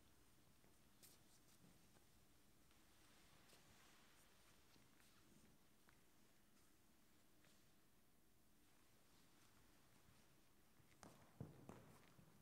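A cloth rustles as it is spread and lifted.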